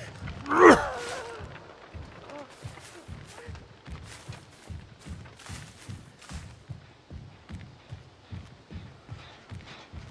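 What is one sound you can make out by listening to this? Footsteps crunch steadily over grass and ground.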